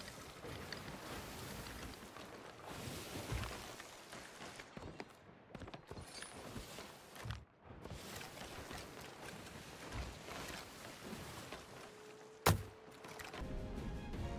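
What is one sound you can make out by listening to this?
Rough waves churn and splash against a ship's hull.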